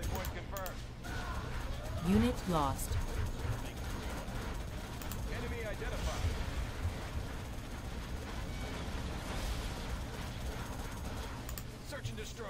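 Laser beams zap and crackle in rapid bursts.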